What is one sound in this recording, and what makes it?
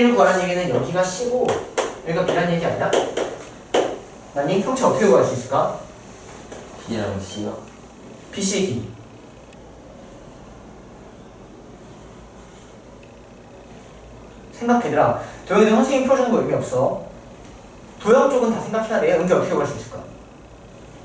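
A young man speaks calmly and clearly, heard close up.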